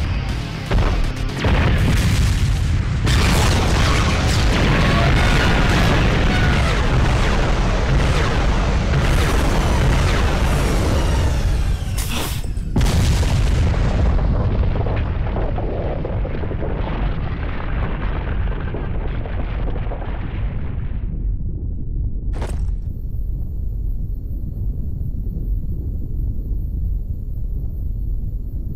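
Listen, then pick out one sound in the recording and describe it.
A deep rumble rolls on in the distance.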